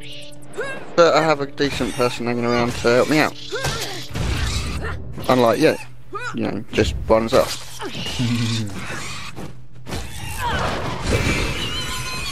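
Weapon blows land with sharp thuds during a fight.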